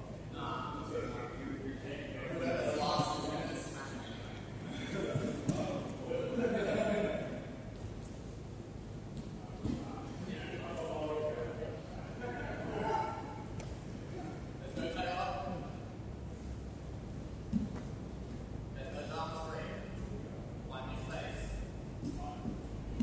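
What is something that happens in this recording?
A man talks in a large echoing hall.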